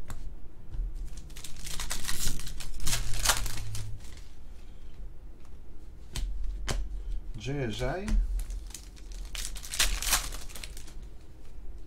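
A foil pack crinkles and tears as hands rip it open.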